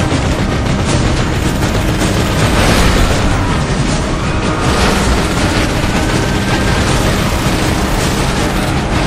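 A heavy truck engine roars and rumbles steadily.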